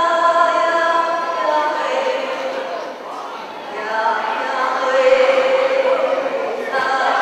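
A man sings a sustained chant.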